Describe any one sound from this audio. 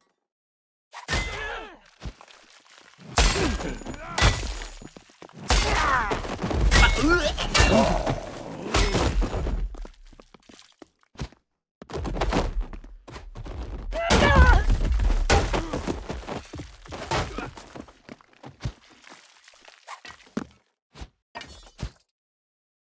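Heavy weapon blows land with loud thuds and wet smacks.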